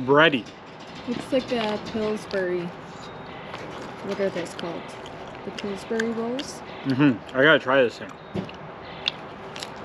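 A young man chews food with his mouth open.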